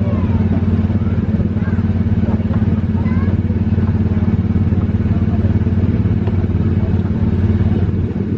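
A ride vehicle rumbles steadily along its track.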